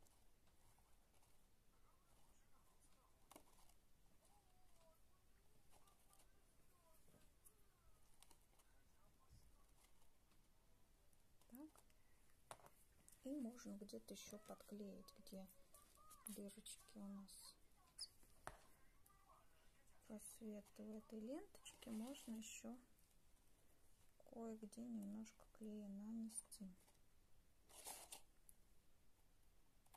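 A small tool taps and scrapes against card.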